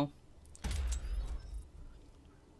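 A soft whoosh sounds.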